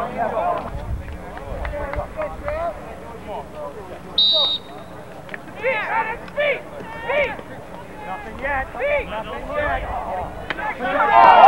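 A crowd of men and women shouts and cheers outdoors.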